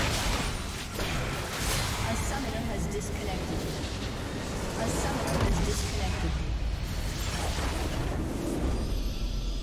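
Magic spells crackle and burst in quick bursts.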